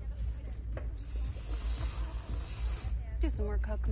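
A person snorts a long sniff through the nose.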